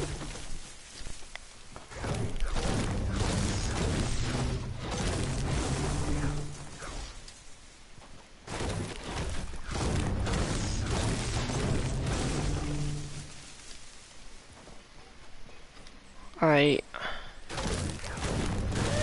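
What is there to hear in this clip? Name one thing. A pickaxe chops repeatedly into a tree trunk.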